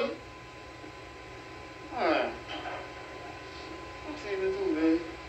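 An elderly man preaches with feeling into a microphone, heard through a loudspeaker.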